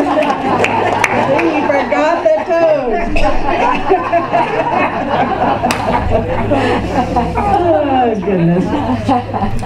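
An older woman laughs heartily close to a microphone.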